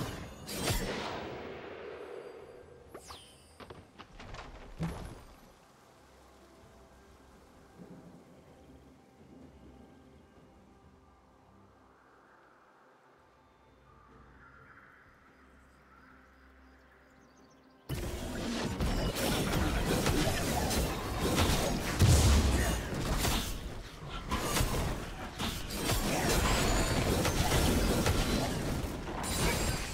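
Sword strikes and magic blasts clash in a fight.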